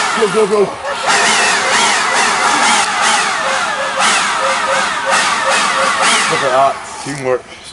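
A chainsaw buzzes and revs.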